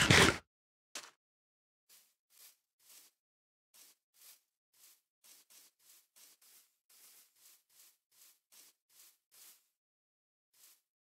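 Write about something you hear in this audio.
Footsteps tap softly on grass.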